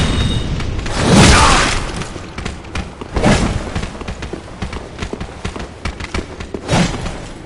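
A body rolls and thuds on stone.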